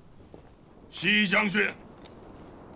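A middle-aged man shouts a command loudly.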